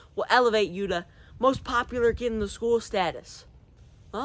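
A teenage boy talks with animation, close to a microphone.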